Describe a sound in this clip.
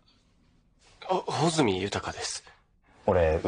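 A young man with glasses replies calmly, close by.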